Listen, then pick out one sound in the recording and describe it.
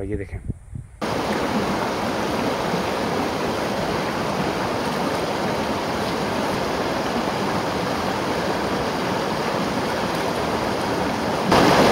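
A stream flows and babbles steadily close by.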